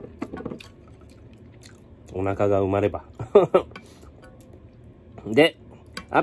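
Chopsticks clink against a metal pot.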